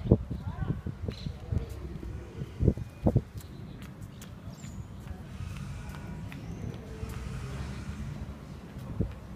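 Small shoes patter on paving as a toddler walks.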